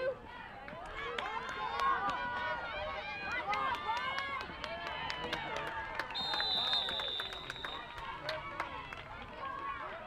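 Football players' pads clash and thud as they collide.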